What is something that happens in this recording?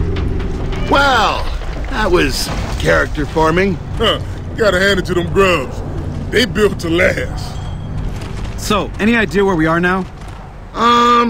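A man speaks casually with a gruff voice.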